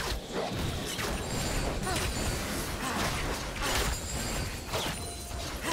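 Magic spells crackle and whoosh in a fast fight.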